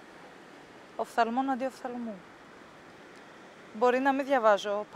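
A young woman speaks quietly and calmly close by.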